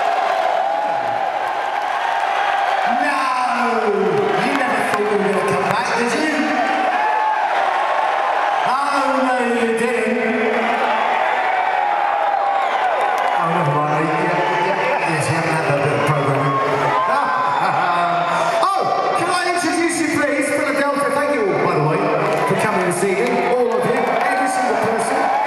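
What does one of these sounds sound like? A man sings loudly into a microphone over the band.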